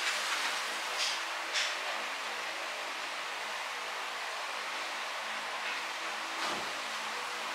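A lighter clicks a few times.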